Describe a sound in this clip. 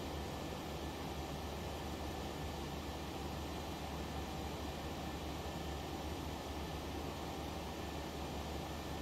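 Jet engines hum with a steady, low roar.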